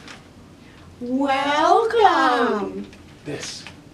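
A young man makes a loud, high, wavering silly voice.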